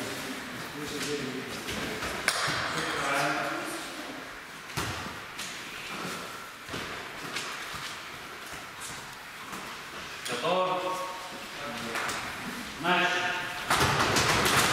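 Teenagers talk and call out in an echoing hall.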